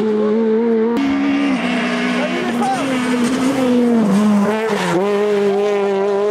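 A rally car engine roars at high revs, its pitch dropping and climbing again with each gear change.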